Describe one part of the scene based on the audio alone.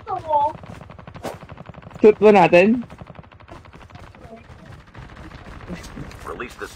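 A young boy speaks with animation into a nearby microphone.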